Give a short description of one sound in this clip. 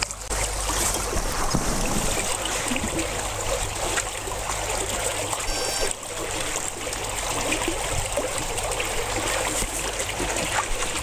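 Water splashes and sloshes as people crawl through broken ice.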